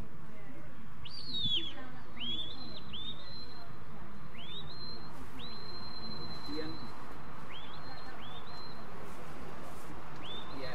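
A shepherd blows short, rising whistle commands outdoors.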